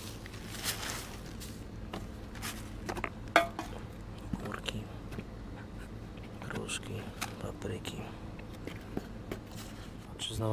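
Vegetables knock and rustle as a hand rummages through a cardboard box.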